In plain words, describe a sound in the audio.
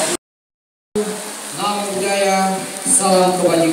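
A young man speaks into a microphone, heard over a loudspeaker in an open echoing space.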